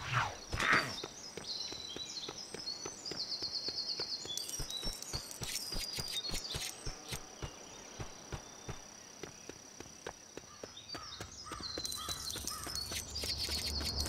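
Quick footsteps patter on grass and dirt.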